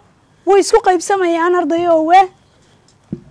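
A woman speaks clearly into a close microphone.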